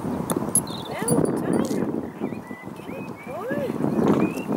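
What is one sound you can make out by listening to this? A woman talks quietly to a horse.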